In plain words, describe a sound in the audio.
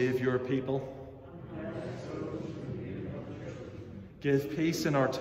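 A man speaks calmly and close to a microphone in an echoing hall.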